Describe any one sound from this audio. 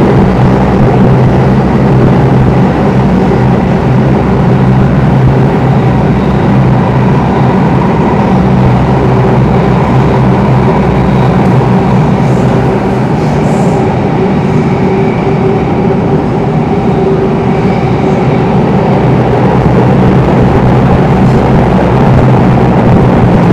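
An electric metro train rumbles through a tunnel.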